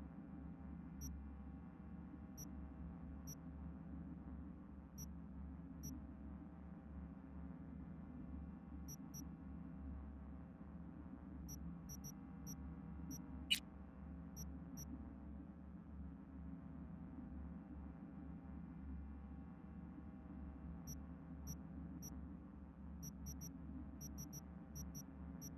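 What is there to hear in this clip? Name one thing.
Soft electronic menu clicks tick now and then.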